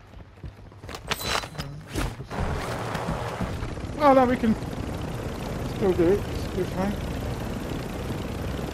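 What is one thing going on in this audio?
A helicopter's rotor thumps and roars close by.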